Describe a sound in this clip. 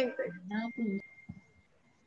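A middle-aged woman speaks cheerfully over an online call.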